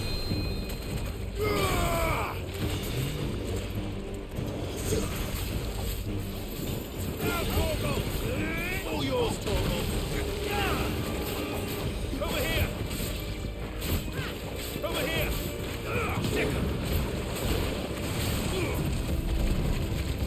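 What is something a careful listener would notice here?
Fiery magic blasts burst and crackle in quick succession.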